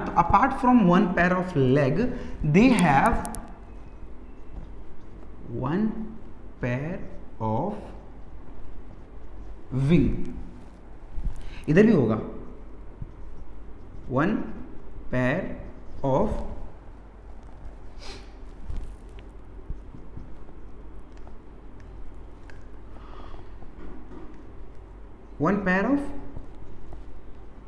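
A man lectures calmly, heard close by.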